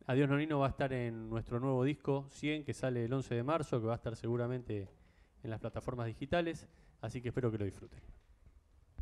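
A middle-aged man speaks calmly into a microphone, amplified in a large room.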